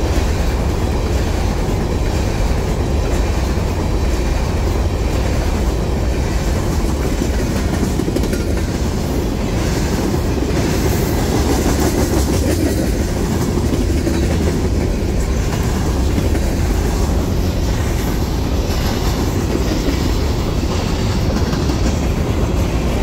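A freight train rolls past close by, its cars rumbling on the rails.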